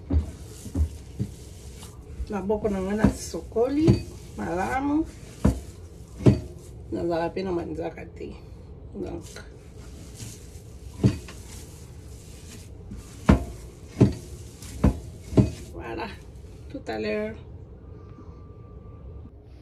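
Hands knead and slap soft dough on a wooden board with dull thuds.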